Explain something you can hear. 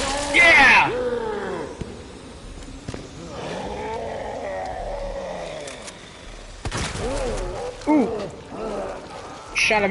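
A monster roars and growls loudly.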